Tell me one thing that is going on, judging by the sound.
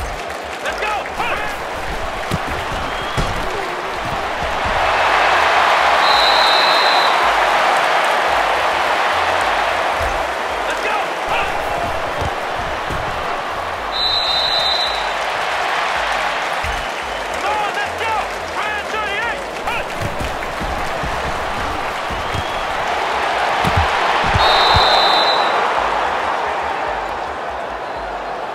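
A large crowd cheers and roars in a stadium, swelling at times.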